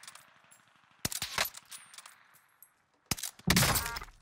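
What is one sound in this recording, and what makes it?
Gunshots crack sharply in a video game.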